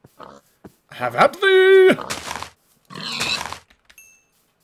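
A pig grunts and squeals as it is struck.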